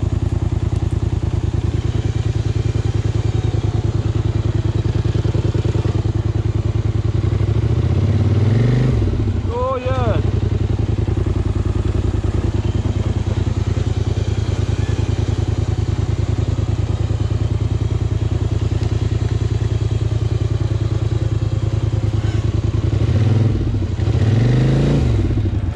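An all-terrain vehicle engine runs steadily up close and revs up and down at times.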